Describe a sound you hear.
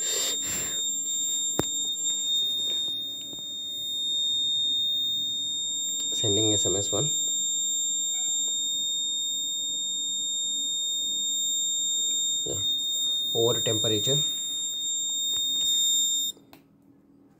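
An electronic buzzer sounds a steady high-pitched tone.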